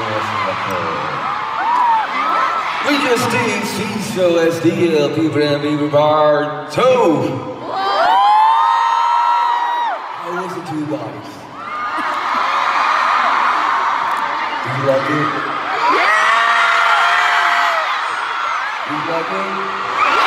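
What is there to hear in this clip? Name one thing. A young man sings into a microphone through loud concert speakers.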